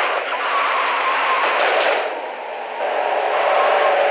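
Tyres screech as a car skids around a corner.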